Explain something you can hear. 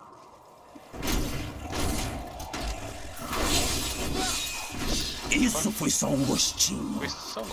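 Game combat sounds clash and burst with spell effects.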